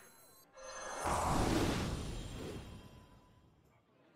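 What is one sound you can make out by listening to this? A game's fiery blast sound bursts and fades.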